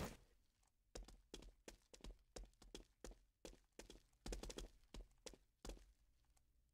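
Footsteps tap softly on wooden boards.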